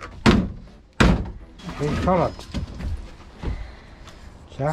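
Wooden boards creak and crack as they are torn loose.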